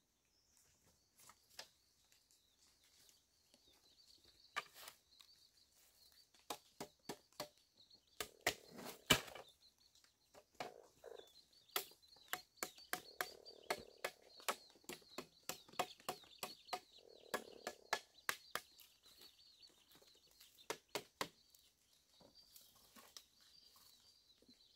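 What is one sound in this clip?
Bamboo slats clatter and knock as they are handled.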